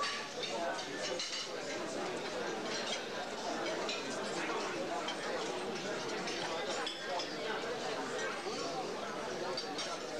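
A crowd of men and women chatter at tables.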